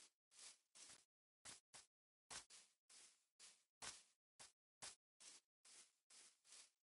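Footsteps crunch through grass in short bursts.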